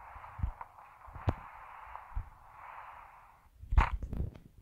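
Wind rushes steadily past a parachute.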